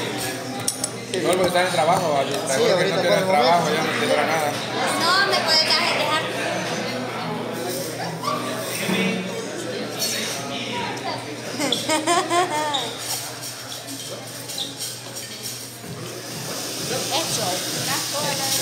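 Young women and men chat and laugh close by.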